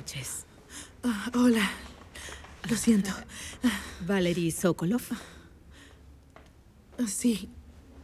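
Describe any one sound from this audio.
A second woman answers.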